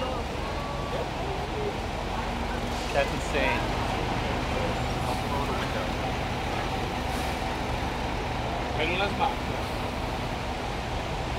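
City traffic rumbles steadily on a wet street nearby.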